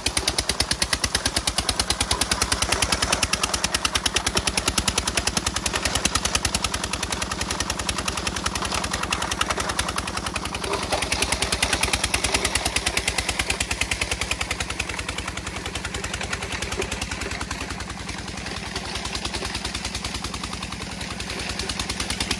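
An engine thuds steadily and rapidly close by.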